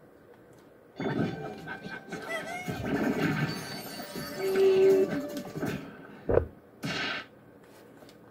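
Game intro music plays through a loudspeaker.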